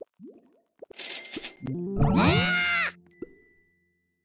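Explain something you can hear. Game sound effects chime loudly as honey is collected.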